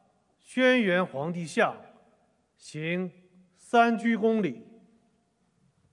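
A man reads out slowly and solemnly through microphones over loudspeakers.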